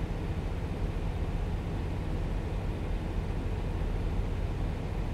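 A truck engine rumbles steadily at cruising speed.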